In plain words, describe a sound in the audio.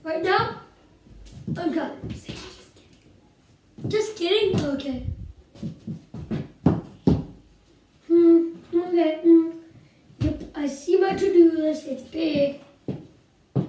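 A young girl speaks with animation close by.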